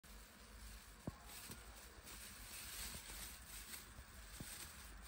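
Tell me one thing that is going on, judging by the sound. A plastic bag crinkles and rustles in someone's hands.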